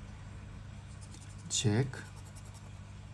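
A soft brush scrapes across a stiff card.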